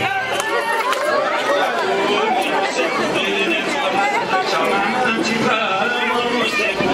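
A crowd of women sings together loudly and cheerfully.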